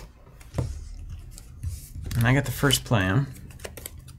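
Playing cards rustle and tap as hands handle them.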